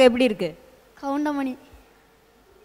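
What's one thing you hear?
A boy answers briefly into a microphone.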